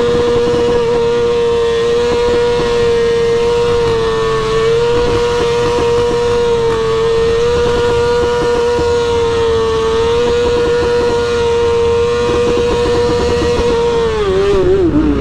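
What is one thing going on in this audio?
A motorcycle engine drones loudly at a steady high speed.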